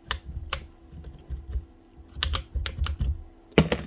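A drill bit clicks into place in a chuck.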